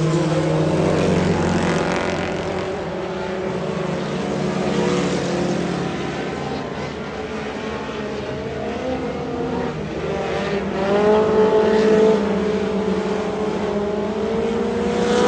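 Race car engines roar and rev loudly.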